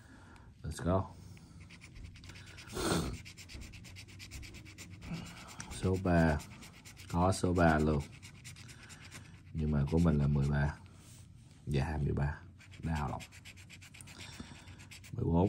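A coin scratches at a lottery ticket with a soft, rasping sound.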